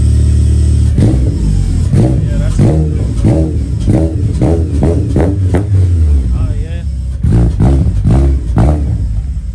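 A car engine revs hard in quick, repeated bursts through a loud exhaust.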